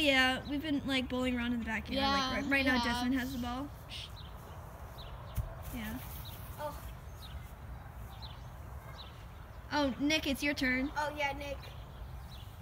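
A boy talks with animation close by, outdoors.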